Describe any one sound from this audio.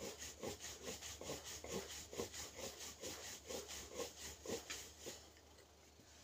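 A wooden rolling pin rolls back and forth over dough in a quick steady rhythm.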